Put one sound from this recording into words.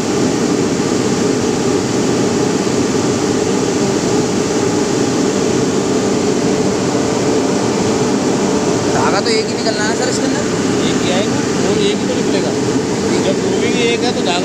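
Yarn winding machinery whirs and rattles loudly and steadily.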